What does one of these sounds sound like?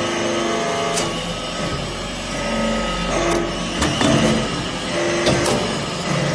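Metal clanks sharply as a press ram moves.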